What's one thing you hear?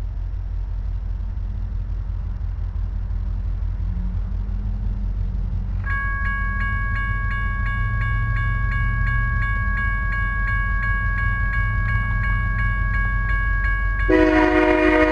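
A train rumbles as it approaches.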